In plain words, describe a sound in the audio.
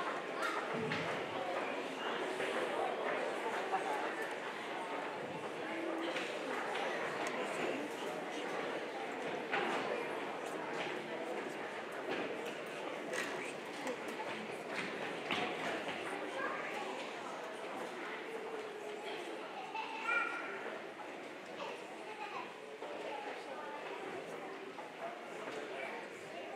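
Many children chatter and murmur in an echoing hall.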